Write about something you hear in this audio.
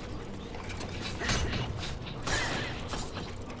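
A fiery blow bursts with a loud whoosh.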